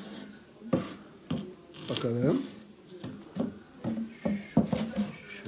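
Wooden boards knock and clatter against a wooden box.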